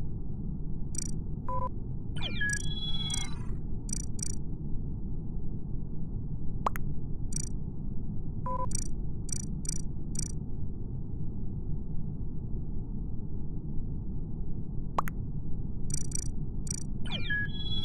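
Game menu buttons click in quick, soft taps.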